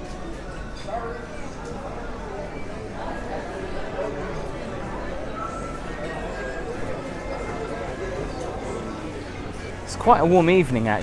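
Many people chatter and murmur nearby.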